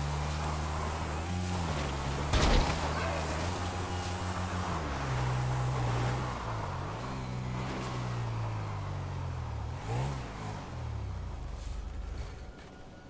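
Tyres crunch over rough dirt.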